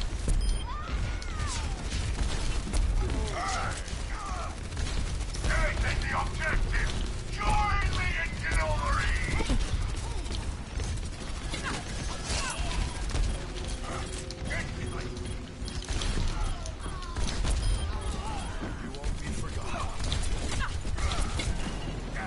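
Guns fire in rapid, heavy bursts.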